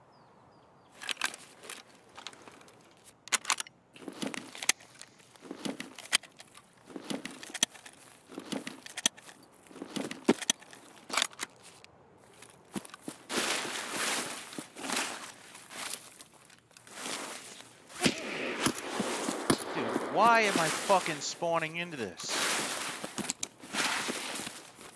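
Footsteps rustle through tall grass and leafy brush.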